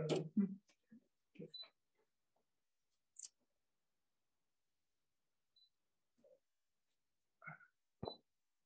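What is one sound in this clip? A woman speaks briefly and calmly over a microphone.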